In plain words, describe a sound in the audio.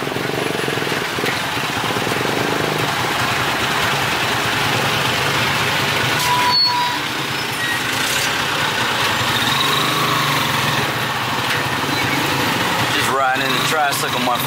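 A van engine idles and pulls away close by.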